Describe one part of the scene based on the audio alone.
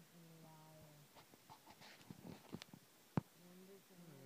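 Fabric rustles and knocks as a hand moves a kitten about.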